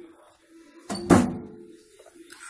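A microwave door shuts with a thud.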